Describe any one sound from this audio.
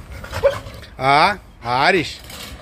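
A large dog barks loudly close by.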